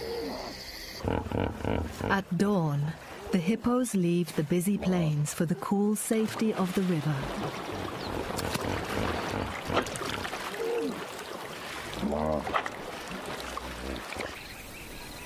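A hippo grunts and bellows loudly.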